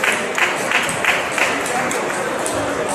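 A table tennis ball clicks back and forth in a quick rally, echoing in a large hall.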